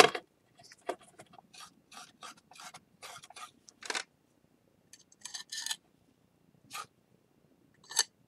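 A metal spoon scrapes against a bowl.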